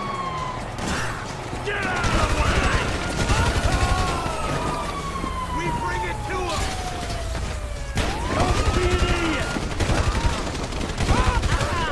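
A police siren wails with a rising and falling pitch.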